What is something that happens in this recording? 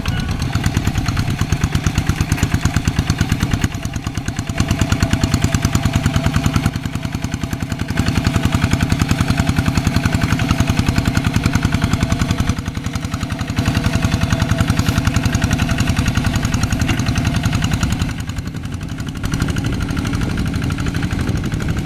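A small diesel engine chugs rapidly and loudly close by.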